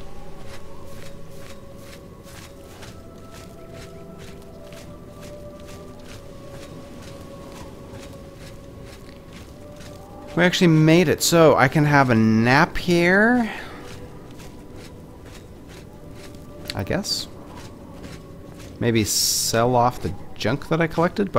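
Footsteps tread steadily on cobblestones.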